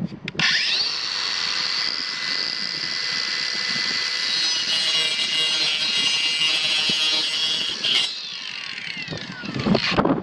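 A small electric saw whines at high speed and then winds down.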